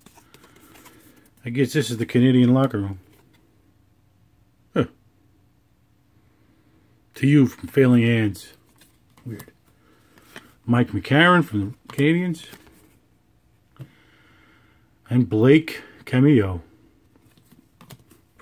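Trading cards rustle and slide softly as hands flip through them.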